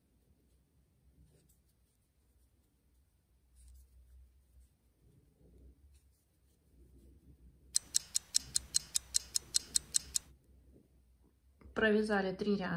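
A crochet hook softly rustles and clicks through yarn.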